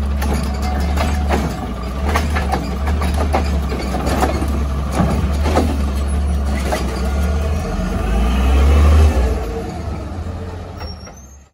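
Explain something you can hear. A garbage truck's diesel engine rumbles steadily close by.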